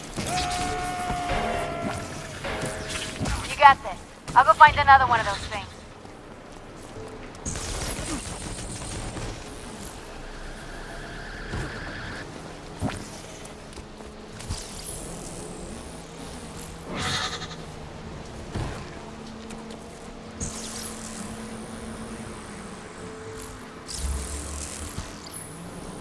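Electric energy blasts crackle and boom in bursts.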